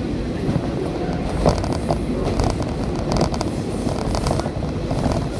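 A heavy truck engine rumbles close by.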